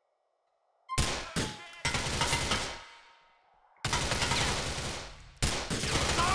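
Automatic gunfire rattles in loud bursts that echo through a large hall.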